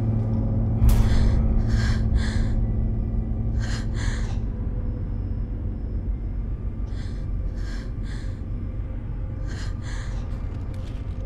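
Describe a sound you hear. A young woman breathes in shaky gasps close by.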